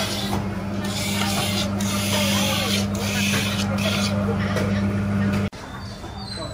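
A motorised grinder hums and whirs loudly.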